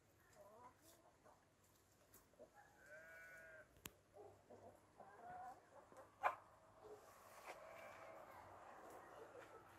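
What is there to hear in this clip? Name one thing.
Chickens cluck and call nearby.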